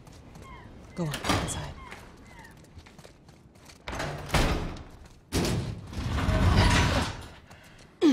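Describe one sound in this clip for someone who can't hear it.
A woman speaks urgently, close by.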